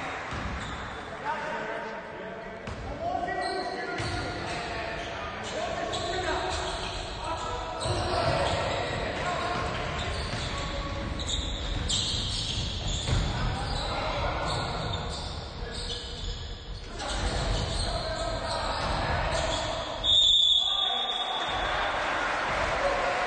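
Young players shout and call out across the hall.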